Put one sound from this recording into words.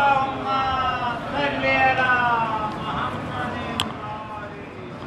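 An elderly man sings through a microphone over a loudspeaker.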